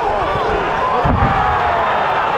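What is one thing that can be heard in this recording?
A punch lands with a thud.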